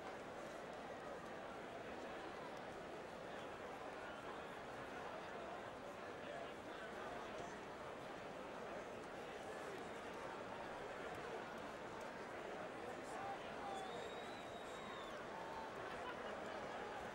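A large crowd murmurs steadily in an echoing arena.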